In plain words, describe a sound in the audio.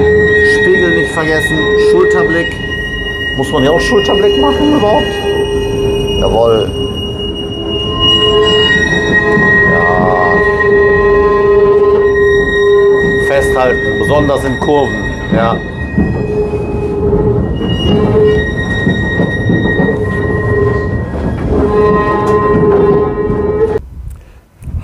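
A tram rumbles and whines steadily along its tracks.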